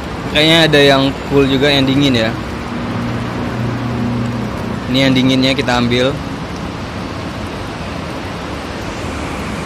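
Water pours from a dispenser into a plastic bottle.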